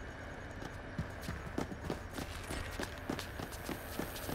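Quick light footsteps patter on a hard floor.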